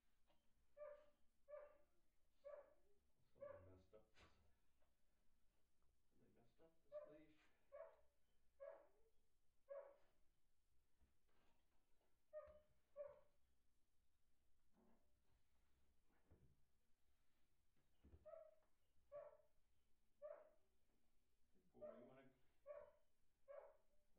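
A dog barks in short repeated bursts.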